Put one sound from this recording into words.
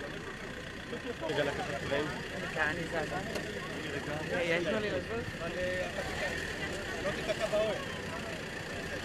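A crowd of men talks and calls out nearby outdoors.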